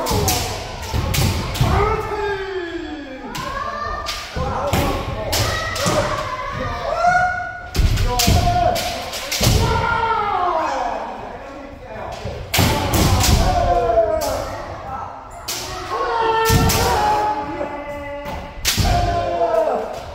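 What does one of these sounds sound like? Several people shout loudly with long gliding cries.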